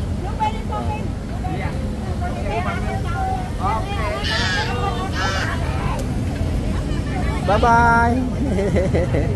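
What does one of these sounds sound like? A young woman speaks close by.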